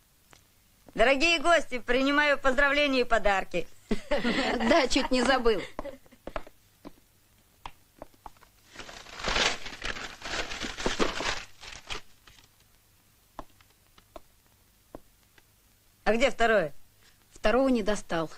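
A boy speaks with animation, heard through a recording.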